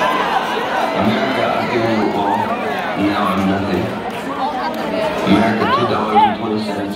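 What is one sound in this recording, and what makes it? A large crowd of men and women chatters loudly all around.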